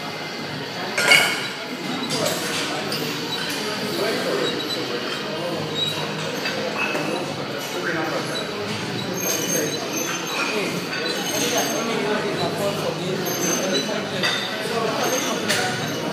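Cable machine weights clank rhythmically as they rise and fall.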